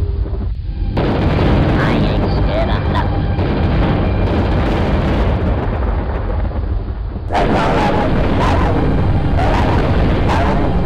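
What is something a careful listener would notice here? Loud explosions and energy blasts roar and crackle in a video game fight.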